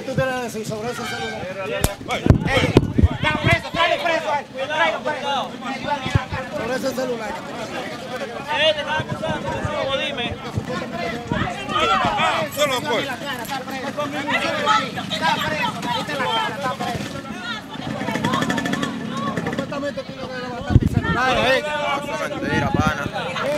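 A crowd of men and women shout and talk over one another close by, outdoors.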